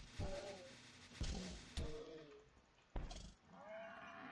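Blows knock against a wooden block until it breaks apart.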